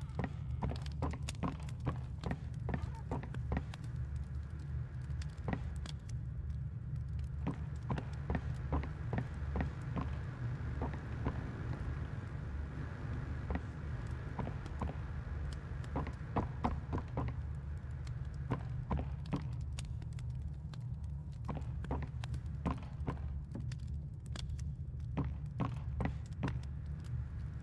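Footsteps thud on a wooden floor at a walking pace.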